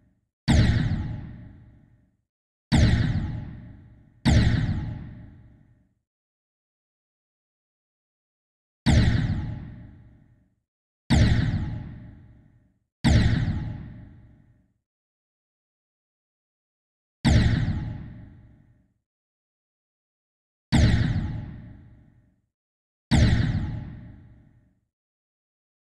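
A short explosion booms and quickly fades away, again and again.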